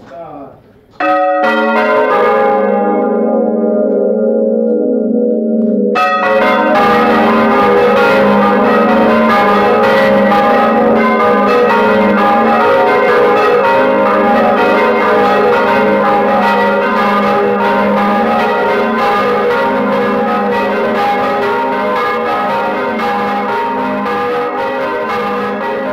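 A large church bell rings loudly, its strokes ringing out and overlapping.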